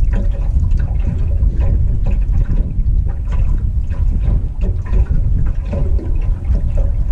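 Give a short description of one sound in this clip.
Water laps against a small boat's hull.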